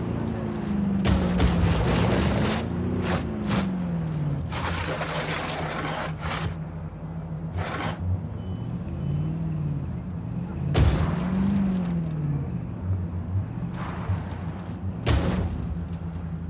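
A car's tyres scrape and thump on a hard surface.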